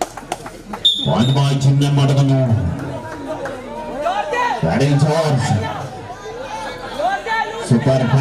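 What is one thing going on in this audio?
A young man chants loudly and repeatedly.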